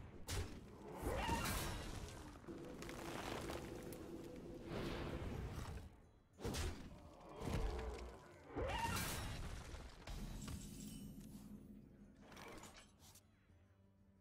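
Magical video game effects whoosh and chime in bursts.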